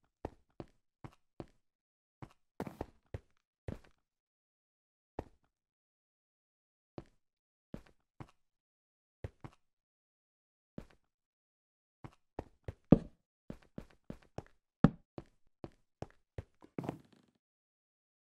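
Footsteps tap at an even pace on stone and wooden floors.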